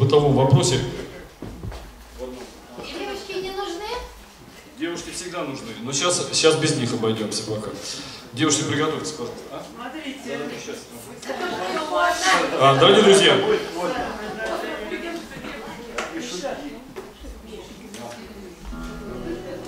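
A middle-aged man talks with animation into a microphone in an echoing hall.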